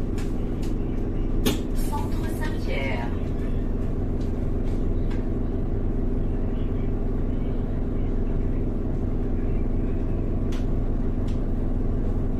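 The bus body rattles and clicks as it moves.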